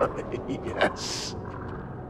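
A man laughs gruffly.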